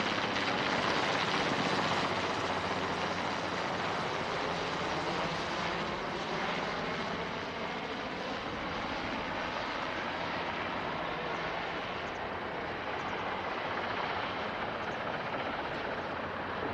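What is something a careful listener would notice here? A helicopter's rotor thuds steadily overhead.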